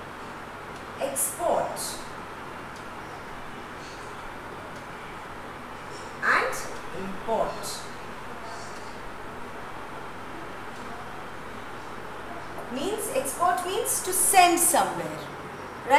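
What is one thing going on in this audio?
A woman speaks in short, clear phrases with pauses between them.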